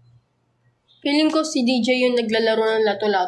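A young woman sings close to the microphone.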